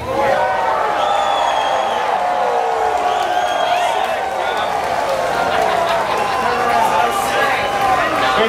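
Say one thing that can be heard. Live band music plays loudly through big speakers.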